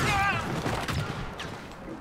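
A spark bursts with a sharp crackle.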